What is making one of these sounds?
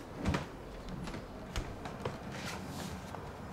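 Footsteps knock softly on a floor.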